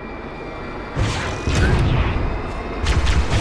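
A rifle fires a burst of shots in a video game.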